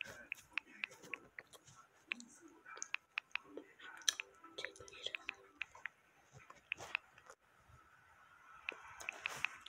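Keyboard keys tap in quick, light clicks.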